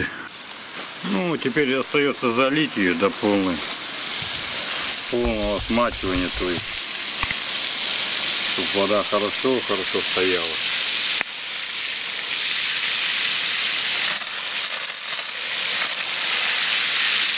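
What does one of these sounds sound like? A hose sprays water onto the ground with a steady hiss.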